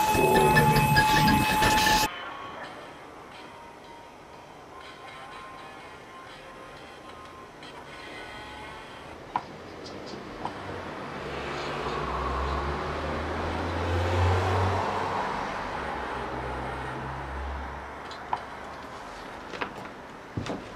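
Electronic tones and a deep bass hum play from a sampler, loud at first and then softer.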